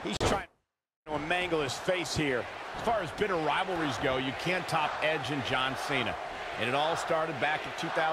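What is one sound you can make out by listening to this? Heavy bodies slam onto a wrestling ring mat.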